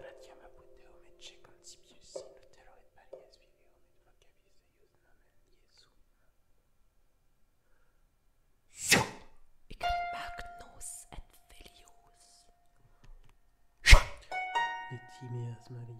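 A harp is plucked, its notes ringing out and fading.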